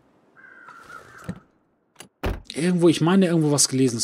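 A truck door opens and shuts.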